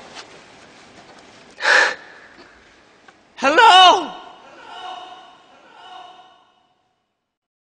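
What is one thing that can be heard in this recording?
A young man groans and cries out loudly in strain.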